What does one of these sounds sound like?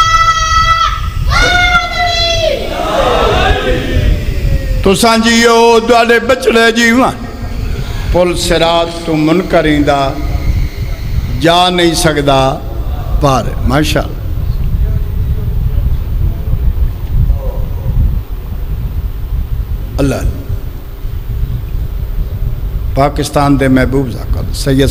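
A man chants with strong feeling into a microphone, heard loudly through loudspeakers.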